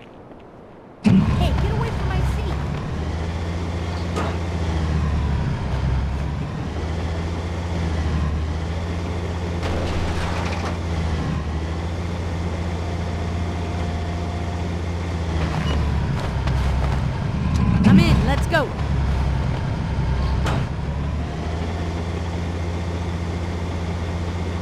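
A tank engine rumbles steadily as the tank rolls along.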